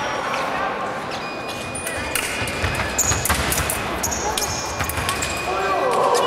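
Fencing blades clash and click together.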